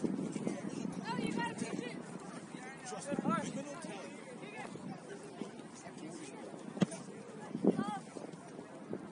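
Men and children shout and call out across an open field.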